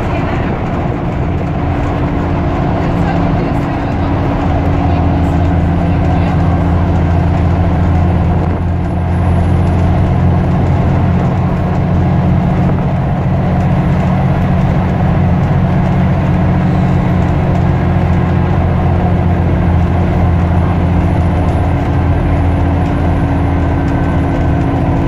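A bus engine hums and drones steadily from inside the bus.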